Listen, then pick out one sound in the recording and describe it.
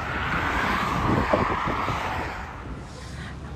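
Cars drive past on a nearby road with a steady rushing sound.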